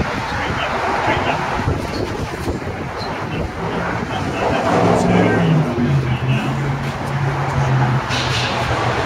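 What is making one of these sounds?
An older man talks nearby.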